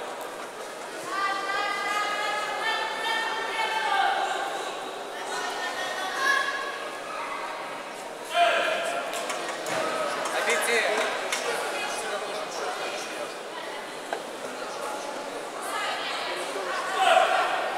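Spectators shout and cheer from the stands in a large echoing hall.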